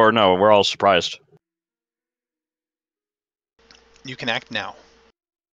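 A man speaks with animation over an online call, close to a headset microphone.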